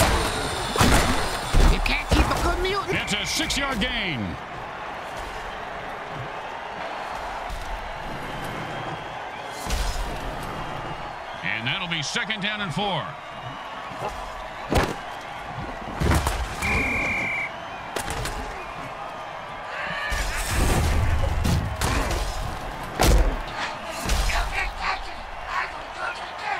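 A crowd roars in a large stadium.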